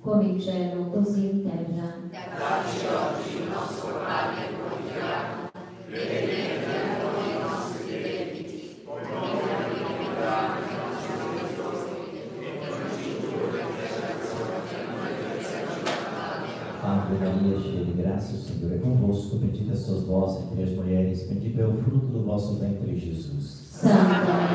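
A man speaks with animation into a microphone, heard over loudspeakers in a large echoing hall.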